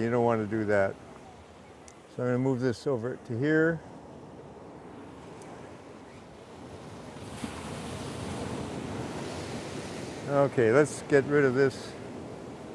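Waves crash and wash onto rocks nearby.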